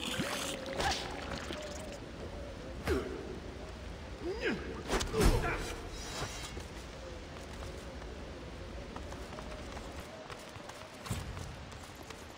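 Spell blasts burst with sudden whooshes.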